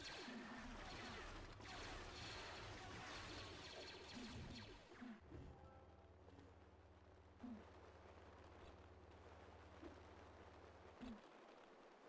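Lightsabers hum and swoosh as they swing.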